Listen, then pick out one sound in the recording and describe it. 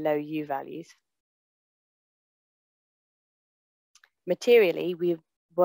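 A young woman speaks calmly through an online call microphone, with pauses.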